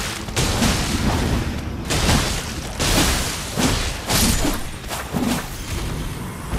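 Heavy blade blows slash and thud into a large creature.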